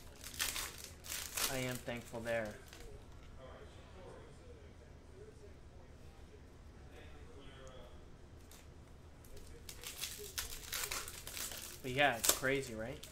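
A foil wrapper crinkles and tears in someone's hands.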